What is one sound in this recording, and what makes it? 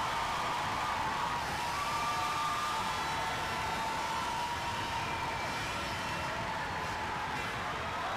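A woman claps her hands nearby.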